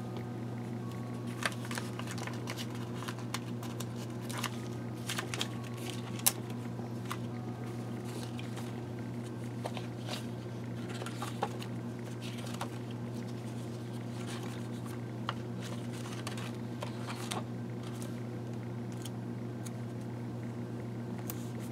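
Paper pages rustle and flip as they are turned.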